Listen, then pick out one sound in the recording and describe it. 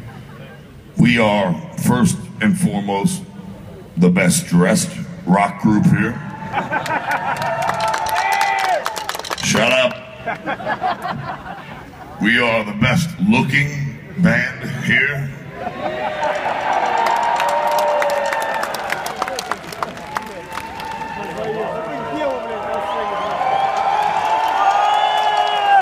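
A large crowd cheers and sings along outdoors.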